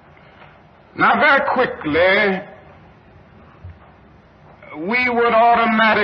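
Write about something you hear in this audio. A man speaks slowly and forcefully through a microphone, with long pauses.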